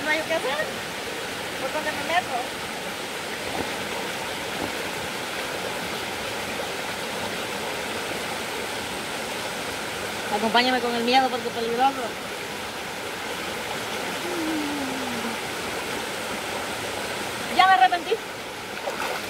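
A young woman speaks briefly and calmly nearby.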